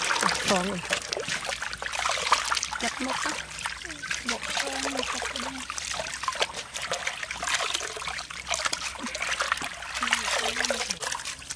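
Water splashes and sloshes as hands scrub snails in a basin.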